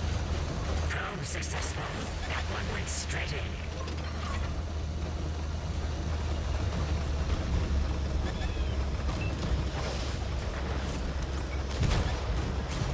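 Shells explode nearby.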